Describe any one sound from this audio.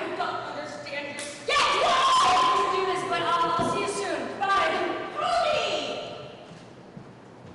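A young man cries out in anguish close by.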